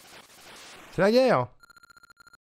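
A video game sound effect swoops up and down loudly.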